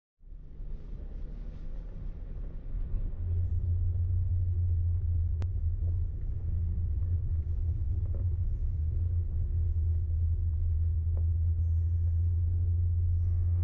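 Tyres crunch over a rough gravel track.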